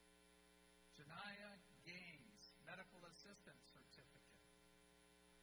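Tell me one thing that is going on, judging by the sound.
A man announces a name over a loudspeaker in a large echoing hall.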